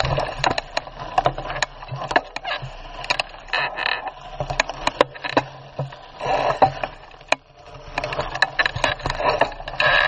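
A bicycle rattles and clatters over bumps.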